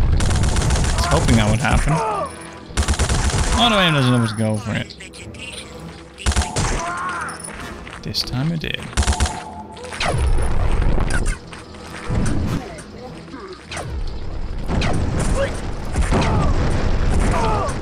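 Laser guns fire in bursts.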